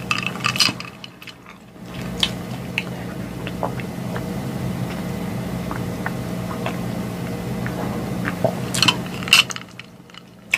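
A woman sips a drink through a straw close to a microphone.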